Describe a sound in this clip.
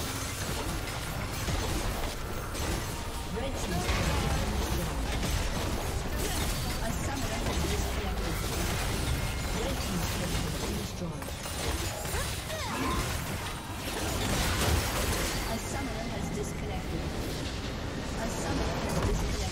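Video game battle sound effects clash and crackle.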